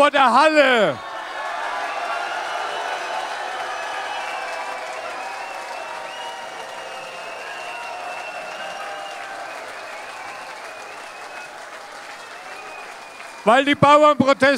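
A large crowd cheers loudly in a big hall.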